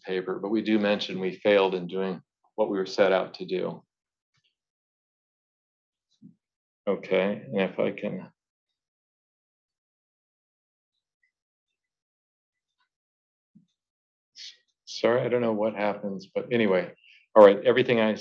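A man lectures calmly into a microphone, with pauses.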